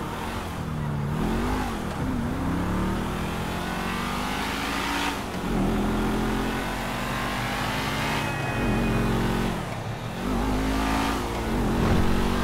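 A car engine roars, revving up and down again and again.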